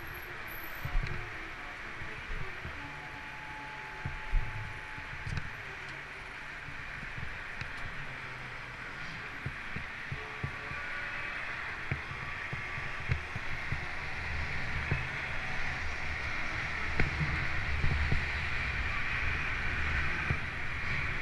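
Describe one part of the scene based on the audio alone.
Wind rumbles against the microphone while riding.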